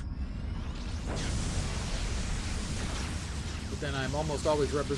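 Electric blasts crackle and buzz in a fight.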